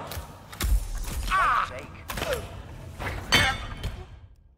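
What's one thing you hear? A body drops heavily to the floor.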